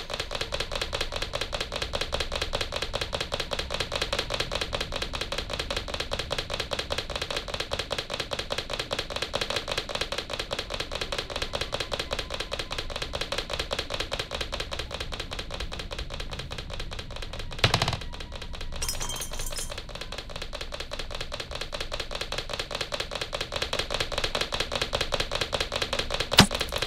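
Footsteps thud quickly and steadily on wooden floorboards.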